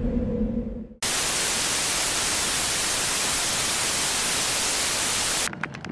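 Television static hisses loudly and steadily.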